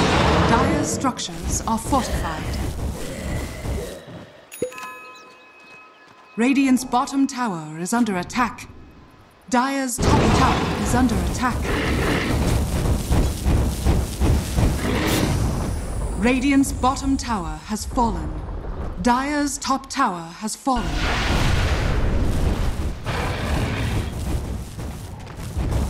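Magical blasts and weapon hits crackle and thud in a fast fantasy battle.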